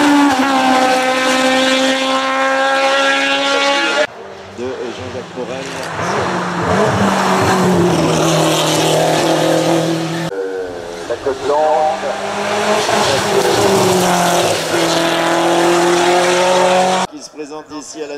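A racing car engine roars loudly, revving high as the car speeds past.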